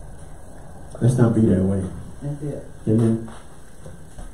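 A middle-aged man speaks calmly and slowly into a microphone.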